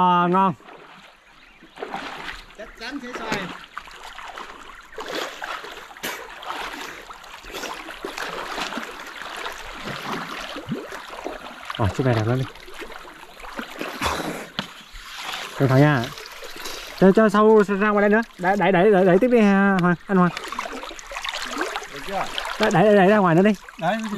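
Water splashes as a man wades through a river.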